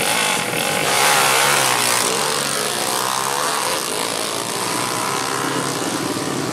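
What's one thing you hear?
A motorcycle races off and roars away into the distance.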